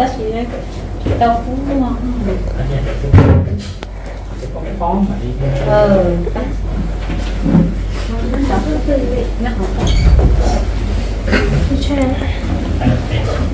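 Several young people talk nearby.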